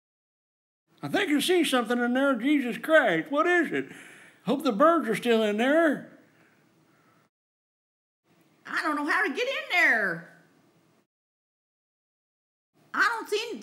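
A woman speaks close by, with animation.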